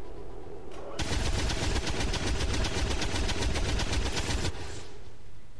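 A heavy machine gun fires a long, rapid burst.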